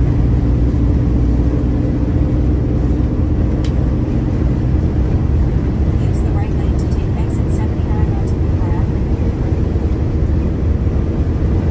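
A truck engine hums steadily from inside the cab.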